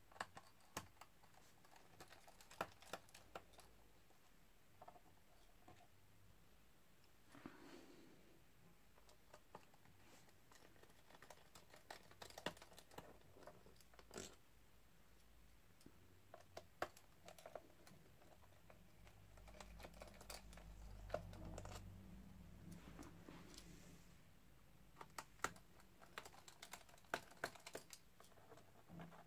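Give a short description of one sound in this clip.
Small metal parts click and tap against a hard plastic surface.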